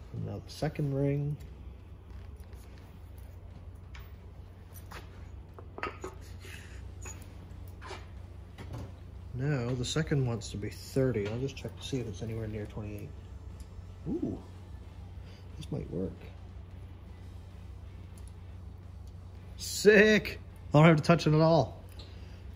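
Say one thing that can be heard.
Metal parts click and clink as they are handled.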